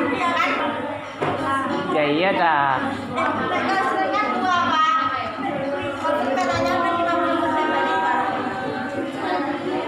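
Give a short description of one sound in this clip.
A group of young girls sings together.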